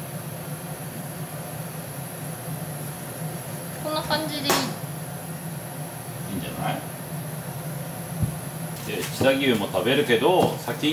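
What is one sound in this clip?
A knife slices through tomatoes on a cutting board.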